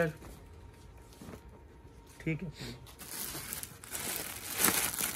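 Fabric rustles as a hand handles cloth.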